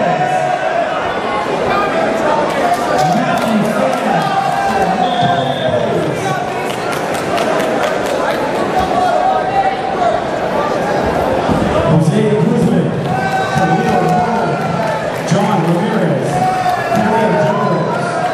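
A crowd chatters and shouts throughout a large echoing hall.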